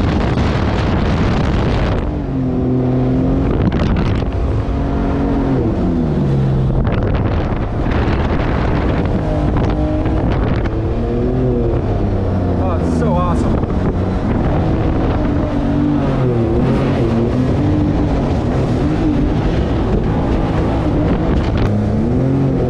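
Water rushes and splashes against a moving hull.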